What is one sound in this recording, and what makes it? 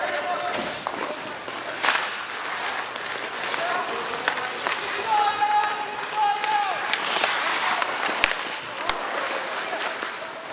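Skate blades scrape and hiss across the ice.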